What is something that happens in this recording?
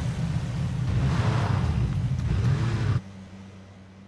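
A game vehicle's engine rumbles and idles.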